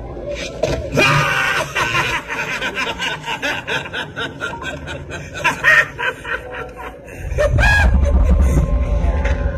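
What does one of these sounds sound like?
Young men laugh and chatter outdoors.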